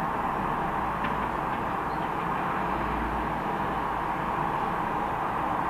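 Distant highway traffic rumbles steadily.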